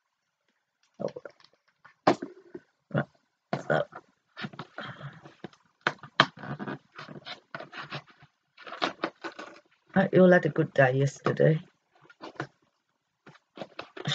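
Small clicks and rustles sound as a woman handles a paper calendar.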